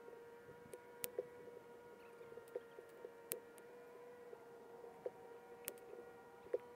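A golf club sharply strikes a ball several times.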